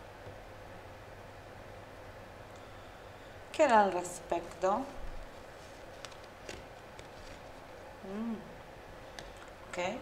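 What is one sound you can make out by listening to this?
A card is laid softly down on a cloth.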